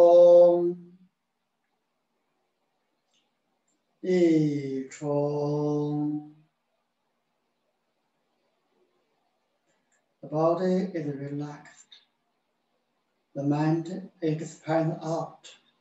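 A man speaks calmly in short phrases, with pauses between them.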